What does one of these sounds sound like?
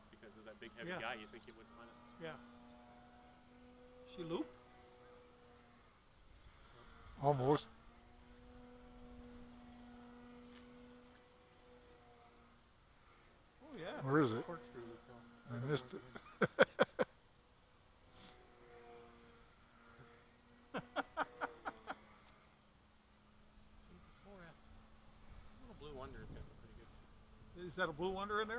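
A small remote-control aircraft buzzes overhead.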